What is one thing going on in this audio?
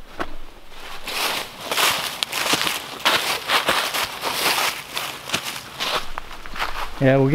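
Dry leaves crunch and rustle under a man's footsteps.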